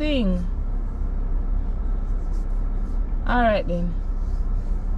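A young woman speaks up briefly, close by.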